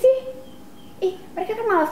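A young woman speaks angrily.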